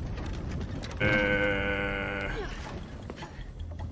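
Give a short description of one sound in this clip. Wooden gears grind and creak as a mechanism turns.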